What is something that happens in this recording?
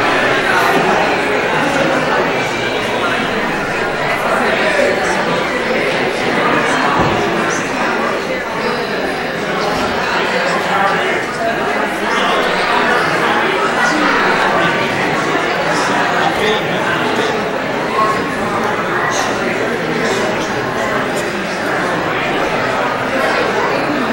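A mixed choir of men and women sings together in a large, echoing hall.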